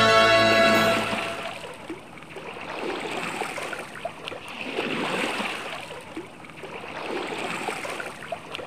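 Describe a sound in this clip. Waves wash and swell steadily against a boat hull.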